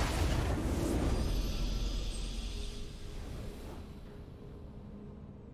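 A triumphant victory chime plays and fades.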